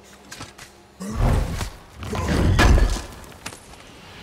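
A heavy stone lid grinds and thuds open.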